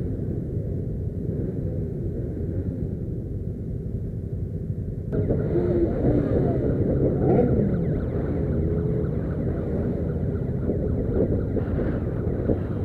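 Motorcycle engines rumble and putter close by.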